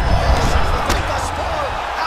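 A kick thuds against a fighter's body.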